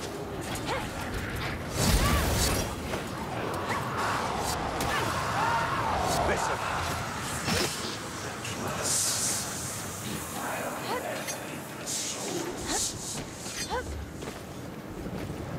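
Blades strike and clash in a fight.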